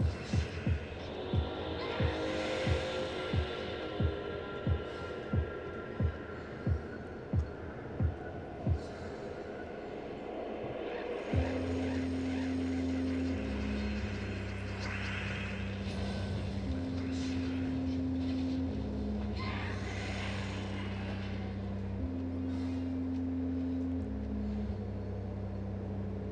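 Electronic game music plays with a low, steady beat.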